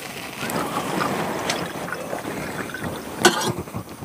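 A man pours liquid from a kettle into a cup.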